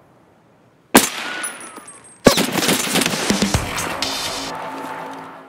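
Two loud gunshots crack and echo.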